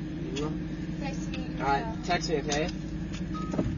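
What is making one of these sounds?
A young man speaks casually nearby inside a car.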